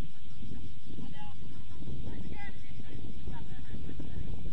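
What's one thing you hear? Young players shout to each other across a field in the distance.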